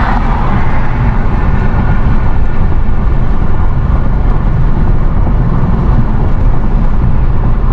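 Wind rumbles against the car.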